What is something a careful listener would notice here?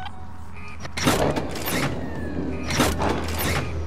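A metal lever clunks.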